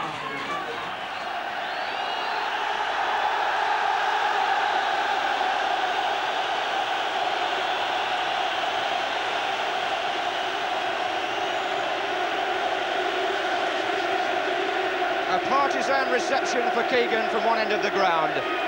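A large crowd cheers and roars in a big open stadium.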